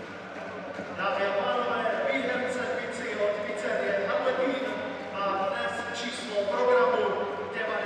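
A crowd of fans chants and sings loudly in a large echoing arena.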